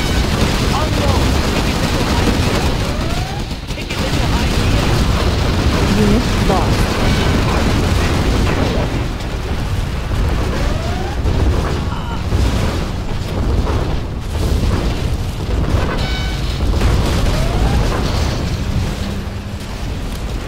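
Explosions boom and rumble again and again.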